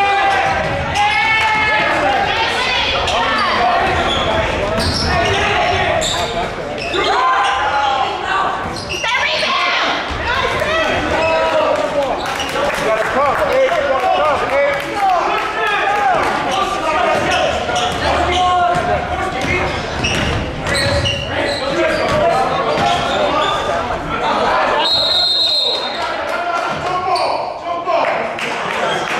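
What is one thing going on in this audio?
A crowd chatters and cheers in a large echoing gym.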